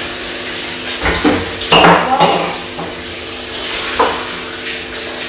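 Water splashes in a basin as hands scoop it up.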